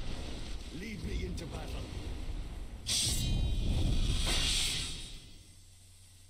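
A magical spell effect whooshes and shimmers loudly.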